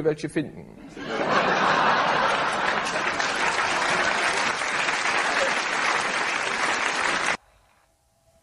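A large audience laughs and applauds.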